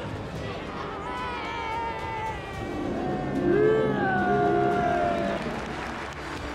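A crowd of fans chants and cheers loudly.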